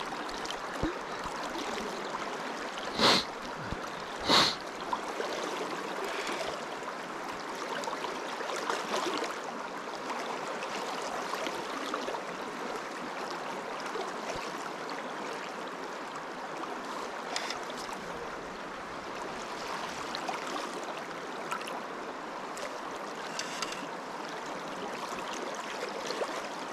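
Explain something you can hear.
A river rushes and ripples steadily close by.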